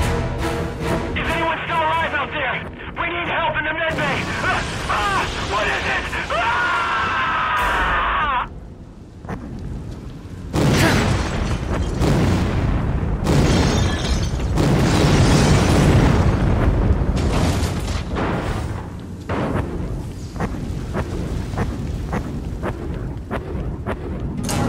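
A lightsaber hums and swooshes.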